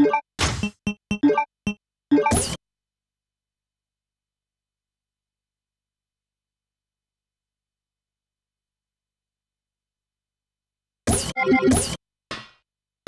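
Menu selection blips sound in quick bursts.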